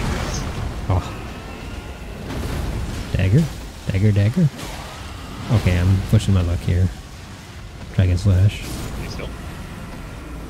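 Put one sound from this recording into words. Heavy blows and crashes ring out as a huge creature is fought.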